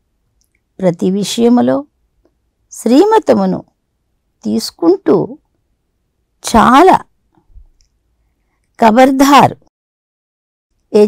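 An elderly woman reads out slowly into a microphone, in short phrases with pauses.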